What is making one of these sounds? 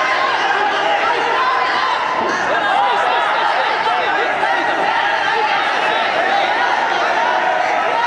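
A large crowd of young people shouts and cheers continuously in an echoing hall.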